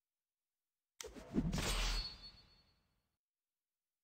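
A deep whooshing menu sound swells and fades.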